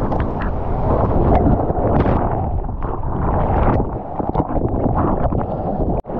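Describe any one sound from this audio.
A breaking wave churns and roars over a surfer.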